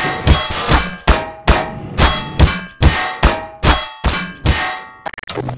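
A metal bar strikes a hard body again and again with ringing clangs.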